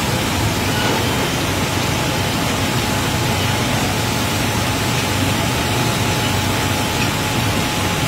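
A hydraulic platform whirs as it lifts cargo.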